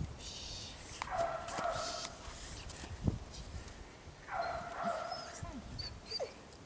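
A man calls out commands to a dog.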